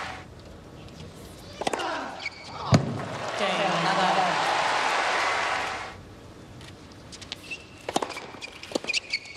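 A tennis ball is struck with sharp pops during a rally.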